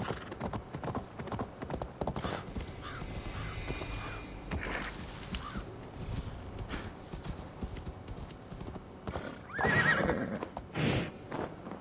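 Horse hooves crunch over snow at a steady walk.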